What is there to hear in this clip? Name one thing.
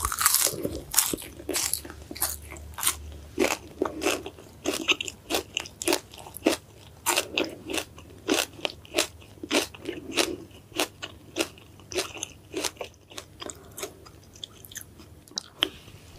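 A woman chews crunchy food close to a microphone, with wet crunching sounds.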